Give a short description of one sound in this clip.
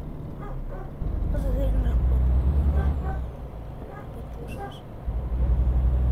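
A truck engine rumbles louder as it speeds up.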